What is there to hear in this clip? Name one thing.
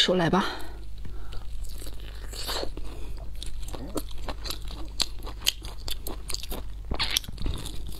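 A woman chews and smacks food wetly and close to a microphone.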